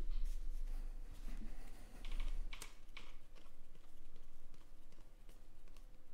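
Trading cards shuffle and flick as hands sort through a stack.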